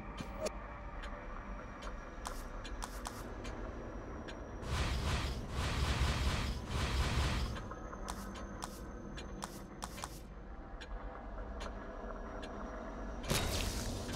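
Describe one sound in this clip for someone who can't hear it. Short menu clicks tick now and then.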